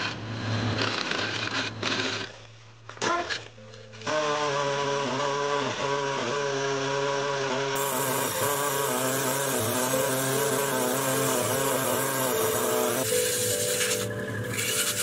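A chisel scrapes and cuts against spinning wood.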